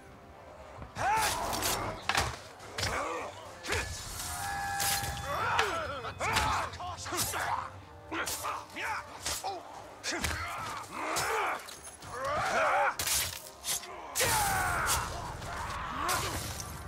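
Brutish men grunt and cry out in pain as they are hit.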